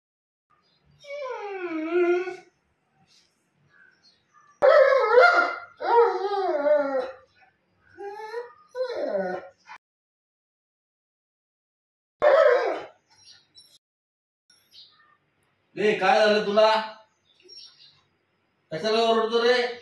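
A dog howls and whines loudly nearby.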